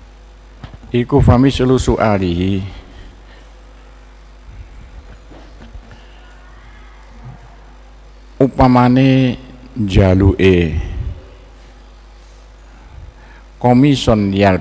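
An older man speaks in a slow, drawn-out voice through a microphone, with long pauses.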